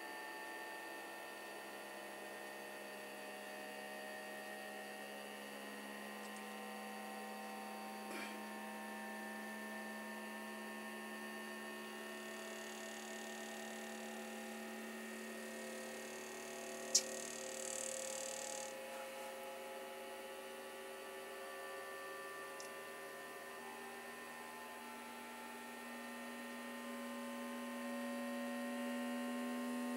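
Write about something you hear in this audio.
A cooling fan hums steadily.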